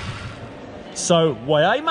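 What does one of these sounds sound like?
A middle-aged man speaks close by with animation, in a large echoing hall.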